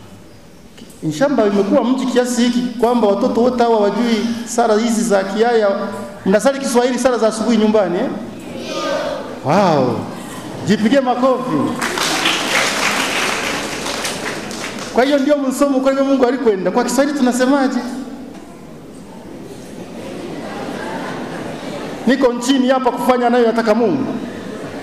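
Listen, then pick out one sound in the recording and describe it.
A crowd of children sings together loudly.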